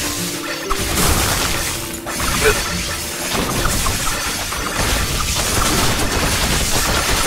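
Rapid game blasts and hits crackle and whoosh.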